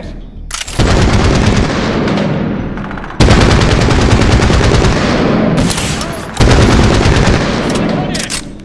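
A rifle fires long, rapid bursts of loud shots.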